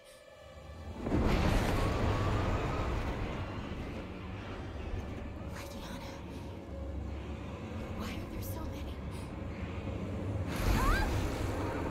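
A strong wind howls and roars in a blizzard.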